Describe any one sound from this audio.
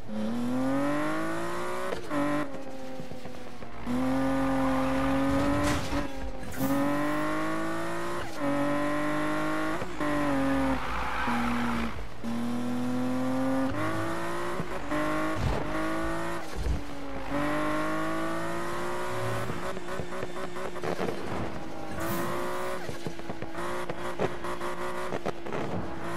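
A car engine revs high and drops as gears shift.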